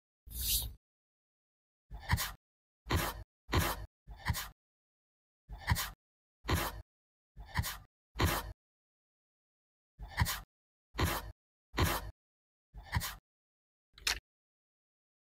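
A cotton pad rubs against skin in short strokes.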